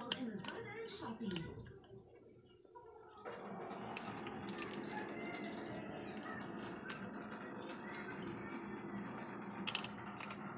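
Kittens lap and chew food from a bowl up close.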